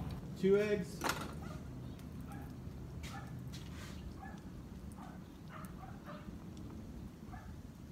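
Batter sizzles and bubbles softly on a hot griddle.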